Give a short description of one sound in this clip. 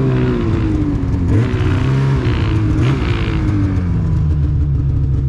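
Snowmobile engines idle with a low, steady rumble.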